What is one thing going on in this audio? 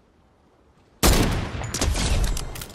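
A rifle fires a single loud, booming shot.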